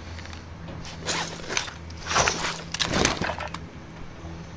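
Items are picked up with quick rattling clicks.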